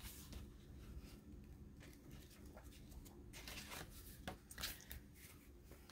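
Pages of a booklet flip.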